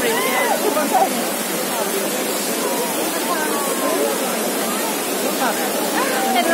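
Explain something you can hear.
Water splashes and rushes steadily from a large fountain.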